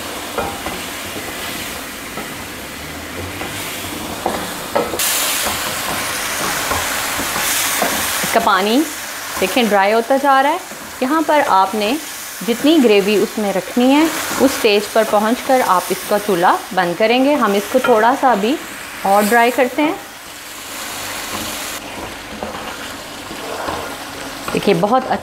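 Sauce simmers and bubbles in a pan.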